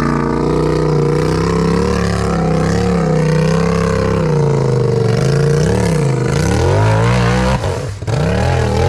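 An off-road buggy's engine revs loudly, rising and falling as it climbs over rocks.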